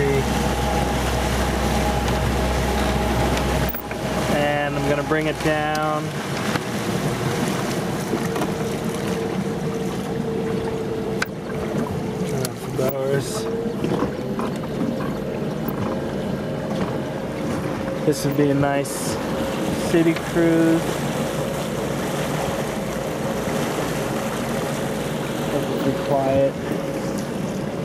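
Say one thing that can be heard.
Water rushes and splashes against a boat's hull.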